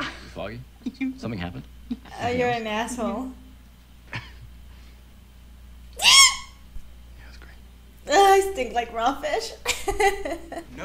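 A young woman laughs softly close by.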